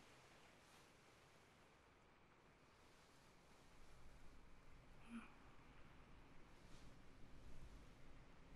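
Fingers softly tap and rub a hollow bamboo tube close to a microphone.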